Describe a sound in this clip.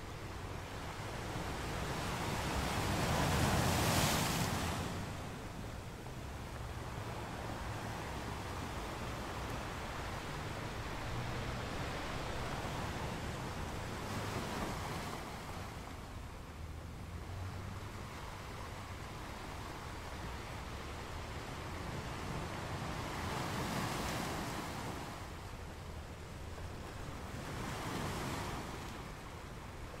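Foamy water hisses and washes over rocks.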